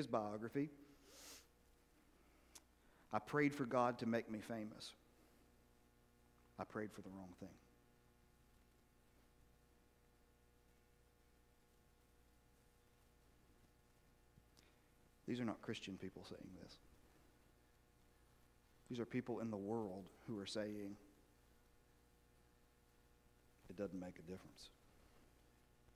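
A man speaks calmly in a large echoing hall, with pauses between phrases.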